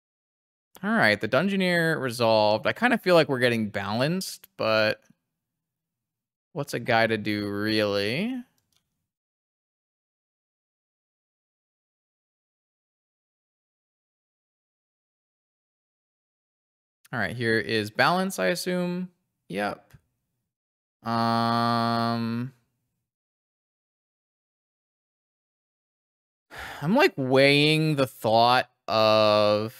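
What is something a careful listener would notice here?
A young man talks with animation through a close microphone, in bursts with pauses.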